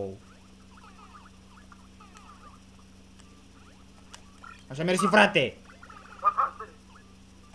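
Chiptune game sound effects chirp and blip as characters jump and move.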